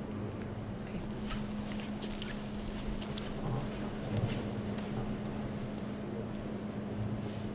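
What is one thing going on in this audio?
A young woman speaks quietly into a microphone in a large hall.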